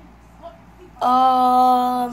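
A young boy sings out a long loud note.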